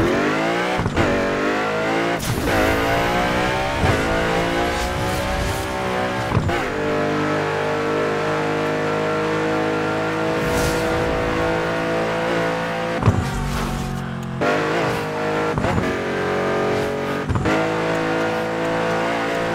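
A racing car engine roars at high revs, shifting gears again and again.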